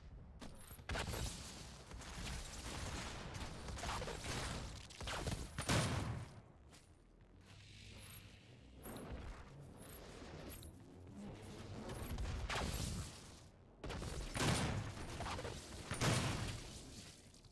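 Gunfire blasts and booms from a game weapon.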